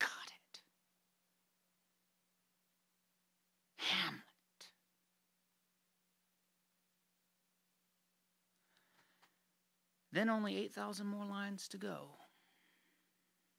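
A man speaks softly and close to the microphone.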